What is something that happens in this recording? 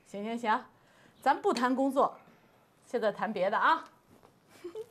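A woman speaks cheerfully nearby.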